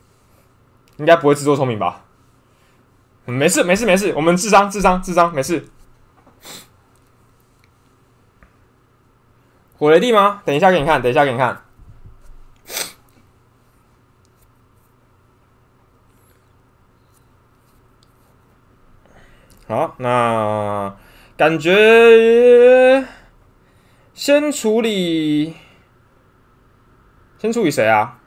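A young man talks with animation into a nearby microphone, in short bursts.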